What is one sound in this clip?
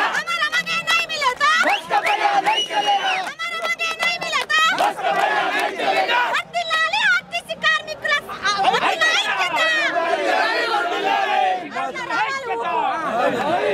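A crowd of men chant and shout loudly close by.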